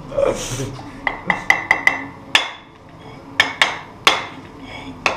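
A metal tool taps and cracks open a clay pot.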